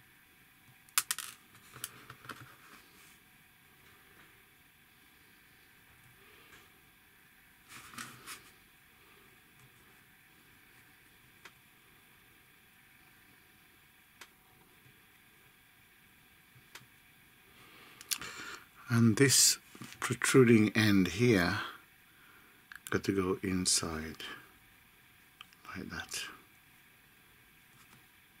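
Small plastic parts click and snap together between fingers.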